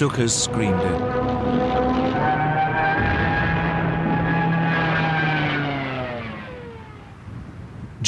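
A diving plane screams with a falling whine.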